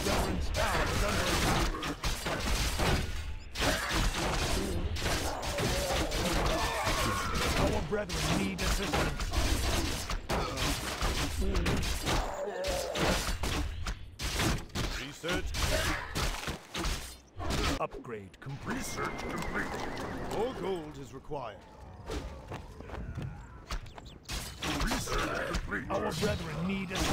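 Spells crackle and burst in the fighting.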